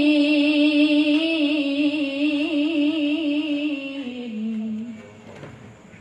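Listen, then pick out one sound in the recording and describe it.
A young woman chants a recitation in a melodic voice through a microphone, with echo.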